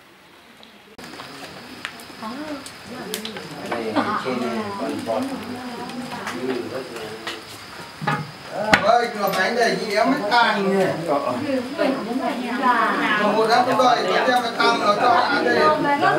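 Oil sizzles and bubbles in a hot pan.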